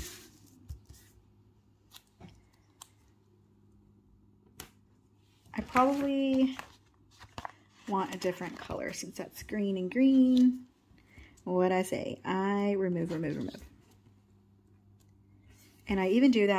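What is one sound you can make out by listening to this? Fingers rub and press stickers onto paper with soft rustles.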